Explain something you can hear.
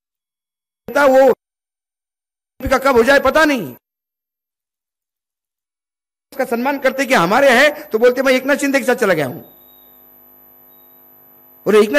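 A middle-aged man speaks forcefully into a microphone in bursts with pauses.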